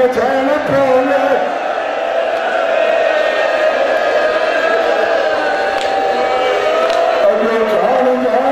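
A large crowd of men chants a slow lament in unison.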